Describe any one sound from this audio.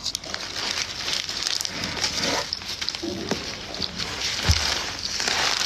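A young woman speaks casually close to a phone microphone.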